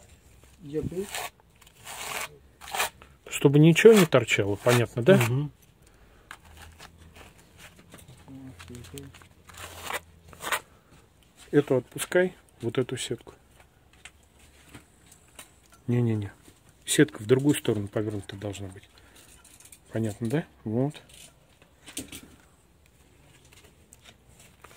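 A trowel scrapes wet plaster across a wall.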